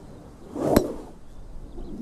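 A golf club swishes and strikes a ball.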